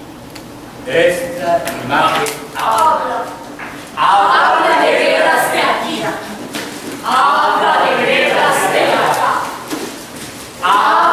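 Several men and women call out loudly in a large echoing hall.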